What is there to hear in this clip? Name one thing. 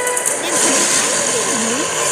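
Steam hisses loudly.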